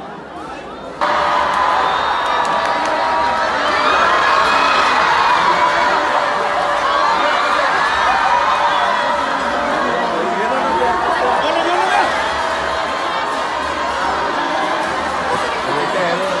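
A crowd cheers loudly nearby.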